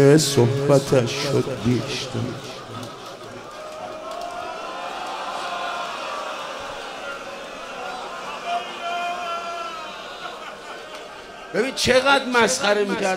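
An older man chants mournfully into a microphone, his voice loud and close.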